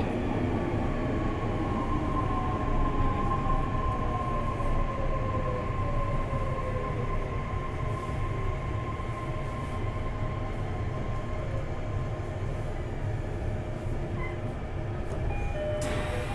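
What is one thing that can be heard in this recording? An electric train's motor whines and hums steadily.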